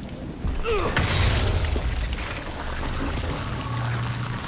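A loud explosion bursts and rumbles.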